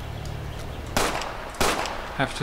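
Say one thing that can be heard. A gun fires two loud shots.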